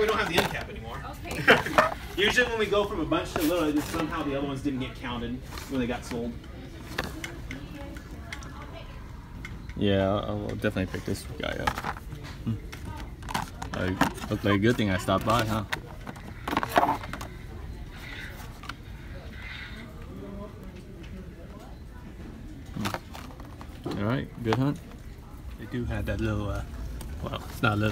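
Plastic packaging crinkles and rattles as it is handled.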